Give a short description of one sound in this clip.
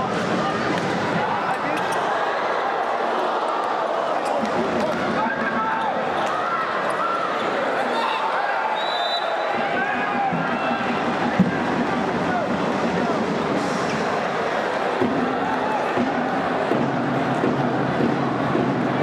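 A large crowd cheers and chants loudly in an echoing arena.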